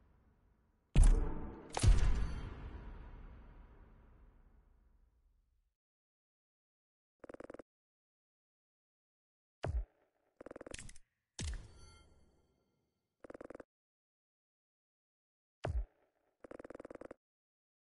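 Game menu sound effects whoosh and chime as rewards tally up.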